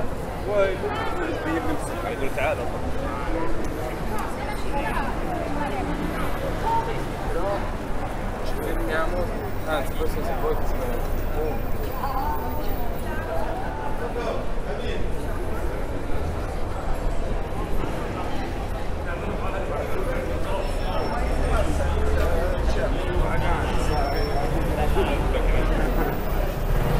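A busy crowd of people chatters all around outdoors.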